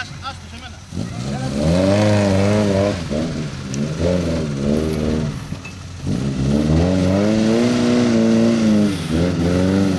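An engine revs hard and strains, rising and falling.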